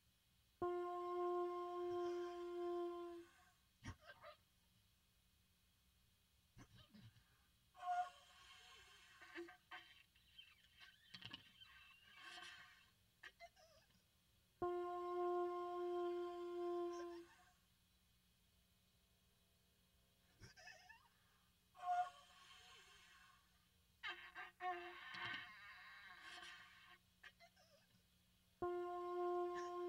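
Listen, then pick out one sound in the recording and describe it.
A steady electronic tone sounds in loud bursts and cuts off abruptly.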